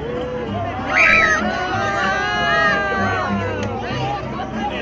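Children shout and squeal excitedly.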